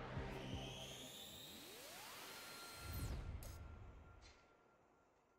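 An electronic whoosh sweeps and fades.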